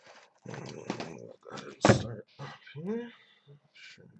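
A cardboard box slides and thumps down onto a hard surface.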